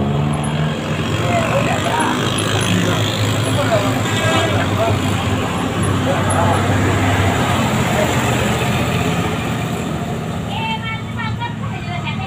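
A heavy truck engine labours loudly uphill.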